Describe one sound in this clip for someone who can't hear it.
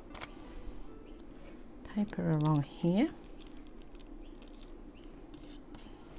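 A small metal tool scrapes and rubs against stiff paper.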